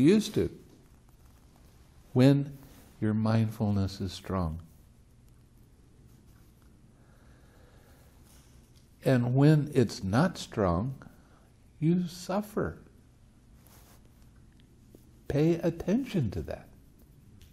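An elderly man speaks calmly and slowly nearby, with long pauses.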